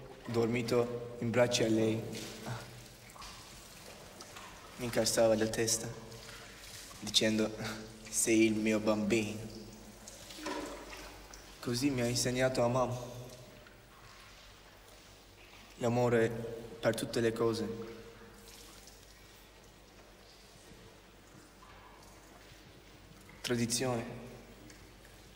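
A young man speaks softly and calmly, close by, in short phrases with pauses.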